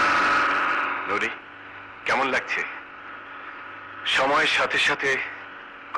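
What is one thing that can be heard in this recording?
A man speaks loudly in short bursts.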